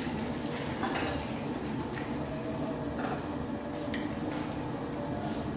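Utensils clink against pots and bowls.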